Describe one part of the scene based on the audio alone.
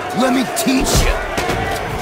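A man shouts angrily up close.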